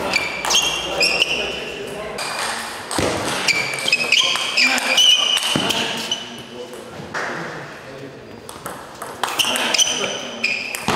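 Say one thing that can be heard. Sports shoes squeak sharply on the floor.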